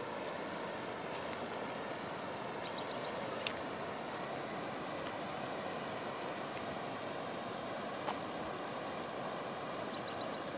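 Water rushes steadily over shallow rapids.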